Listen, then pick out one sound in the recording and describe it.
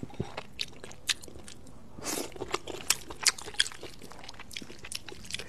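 A young woman slurps noodles loudly, close to the microphone.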